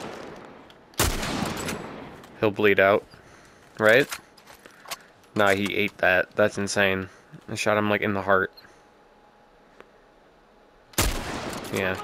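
A rifle fires with a loud, sharp crack.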